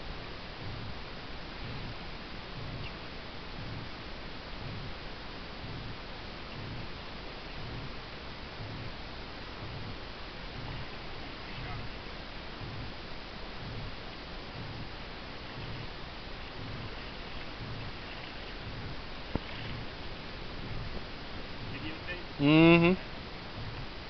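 Water laps and ripples gently.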